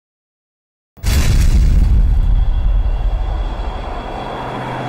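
A propeller plane's engines roar loudly.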